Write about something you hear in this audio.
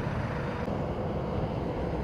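Traffic drives past on a nearby road.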